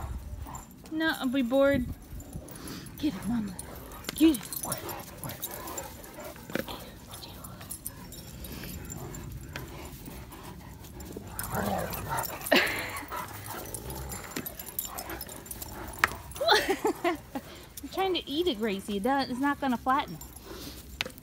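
A dog whines in high, wavering cries.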